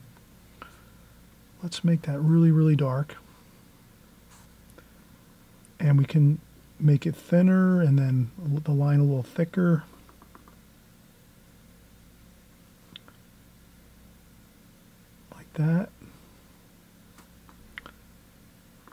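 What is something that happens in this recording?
A paintbrush softly brushes across paper.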